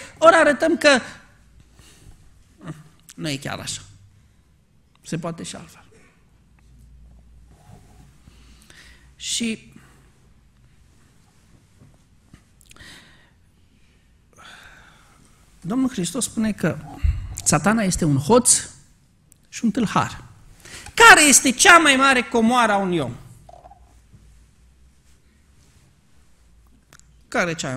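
A middle-aged man speaks calmly into a microphone, pausing often.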